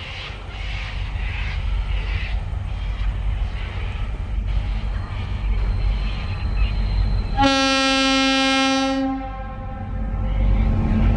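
Diesel-electric locomotives rumble as they haul an empty ore train closer.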